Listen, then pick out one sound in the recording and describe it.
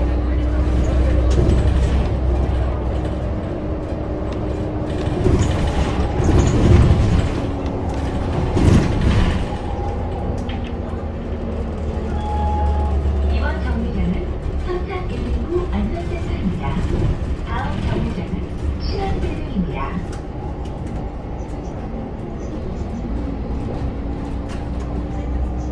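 A bus engine hums and rumbles steadily from inside the cabin.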